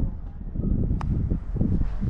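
A putter taps a golf ball with a light click.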